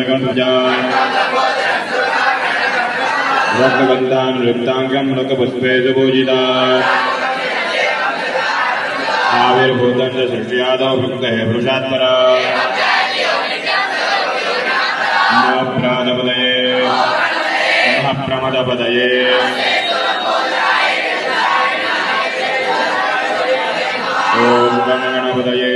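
A group of young men and boys chants together in unison, in a steady rhythm.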